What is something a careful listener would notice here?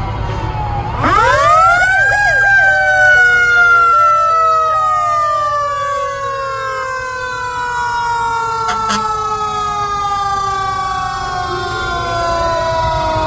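A siren winds up loudly close by and slowly falls.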